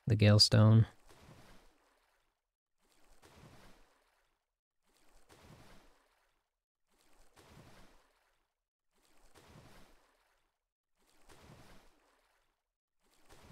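Water splashes softly in a steady rhythm of swimming strokes.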